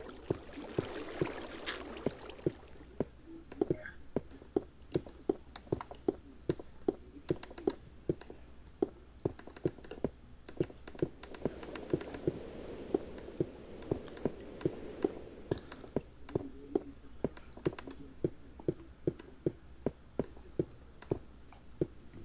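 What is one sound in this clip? Footsteps tap steadily and quickly on stone.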